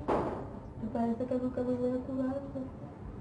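A woman speaks tearfully in a shaky voice.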